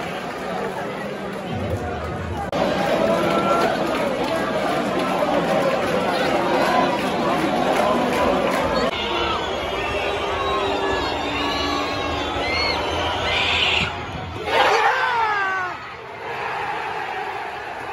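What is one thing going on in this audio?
A large stadium crowd chants and sings loudly nearby.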